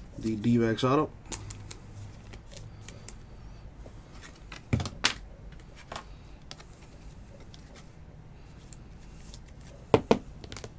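Trading cards rustle and flick as they are sorted by hand, close by.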